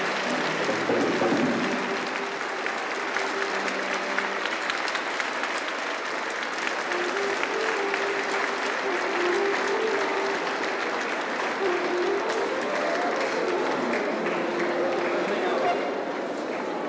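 A band plays music through loudspeakers.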